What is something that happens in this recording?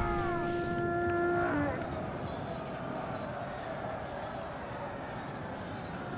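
Soldiers clash and shout in a distant battle.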